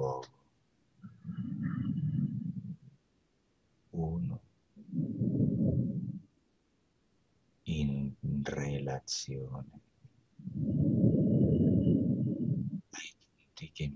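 A man makes long, low humming sounds.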